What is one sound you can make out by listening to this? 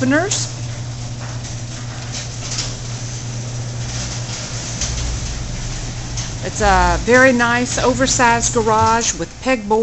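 A garage door motor hums steadily as the door rolls up.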